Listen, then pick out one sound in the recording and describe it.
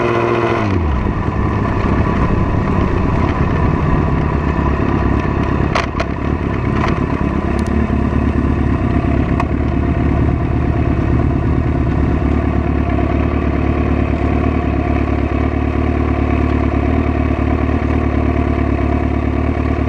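A motorcycle engine idles with a low, steady rumble close by.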